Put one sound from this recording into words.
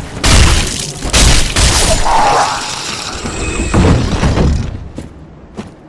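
Loud crashing and clanging blows of combat ring out.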